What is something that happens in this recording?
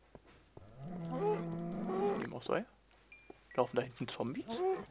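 A cow moos close by.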